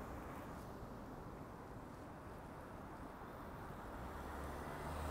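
A car drives away along the street.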